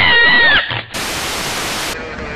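Static hisses loudly.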